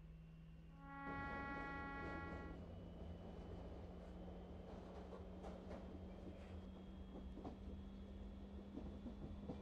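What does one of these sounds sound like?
An electric train pulls away, its motor whining.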